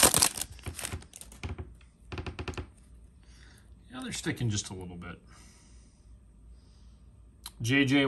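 Cards slide and rustle against each other.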